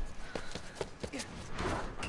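Footsteps clang on a metal staircase outdoors.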